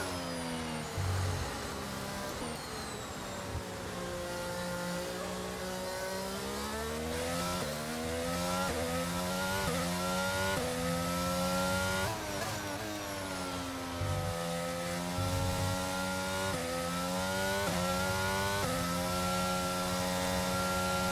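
A race car engine whines, rising in pitch as it speeds up and dropping as it shifts gears.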